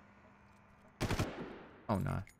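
A rifle fires a short burst.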